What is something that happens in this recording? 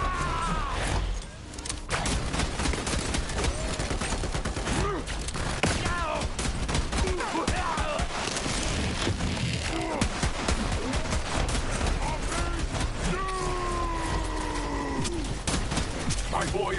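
Gunfire from a game rattles rapidly with bursts of laser zaps.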